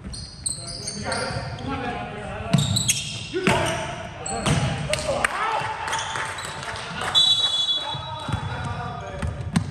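Young men call out to each other during a game.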